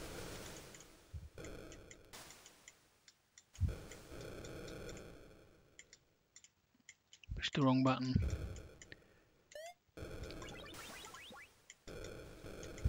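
A Commodore 64 racing game plays chiptune engine noise and bleeps.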